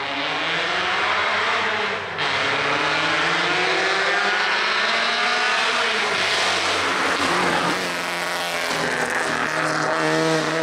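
A rally car engine roars and revs hard as the car accelerates past.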